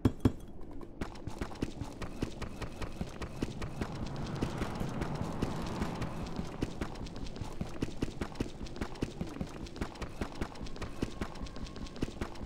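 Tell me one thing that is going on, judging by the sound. A stone block is chipped away with rapid, steady tapping.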